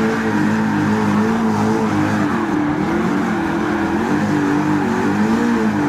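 Tyres screech on asphalt as a car skids.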